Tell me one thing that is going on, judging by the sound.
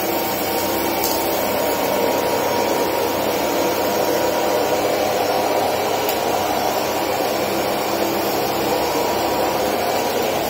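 A vacuum cleaner motor roars steadily and loudly.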